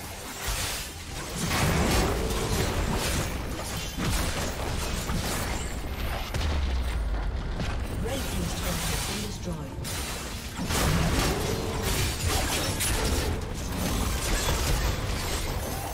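Game spell effects crackle and burst in a fast fight.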